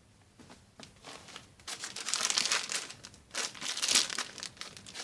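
A plastic bag crinkles and crackles as it is handled.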